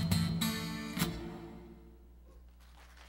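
A guitar chord rings out and fades.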